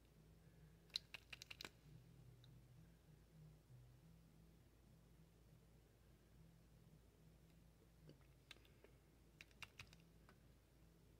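A plastic makeup case clicks and taps.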